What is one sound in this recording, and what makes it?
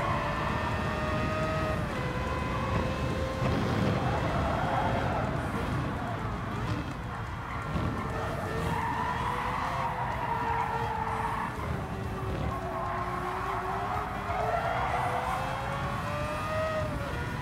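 A racing car engine roars, its pitch rising and falling with gear changes.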